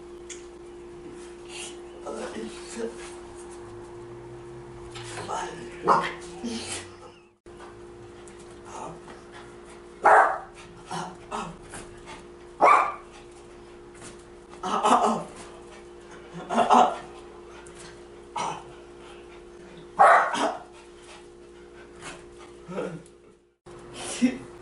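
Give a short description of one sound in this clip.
A dog's paws patter and thump on the floor.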